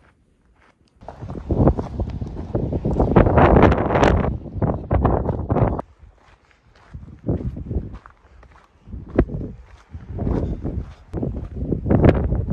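Wind gusts and buffets loudly against the microphone outdoors.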